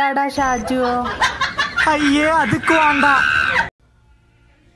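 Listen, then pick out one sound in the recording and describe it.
A young boy talks with animation, close by.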